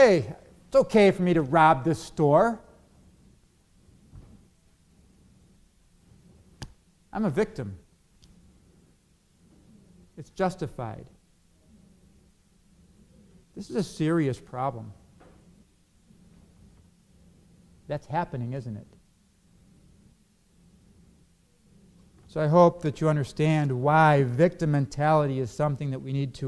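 A middle-aged man speaks calmly into a microphone, with long pauses.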